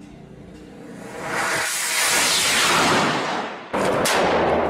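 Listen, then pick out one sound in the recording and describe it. A rocket launches with a loud rushing roar.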